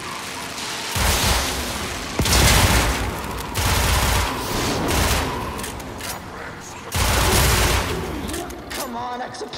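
Loud explosions boom in heavy bursts.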